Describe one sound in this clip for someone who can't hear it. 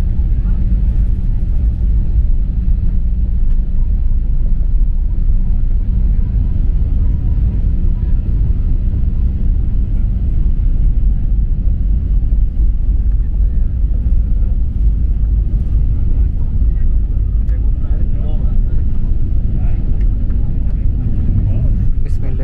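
Landing gear wheels rumble over the runway.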